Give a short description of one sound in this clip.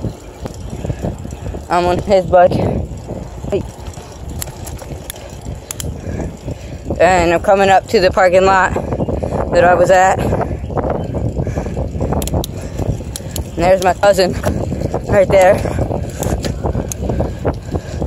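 Bicycle tyres roll steadily over rough pavement.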